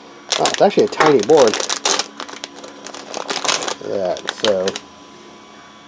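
A foil bag crinkles and rustles as it is opened.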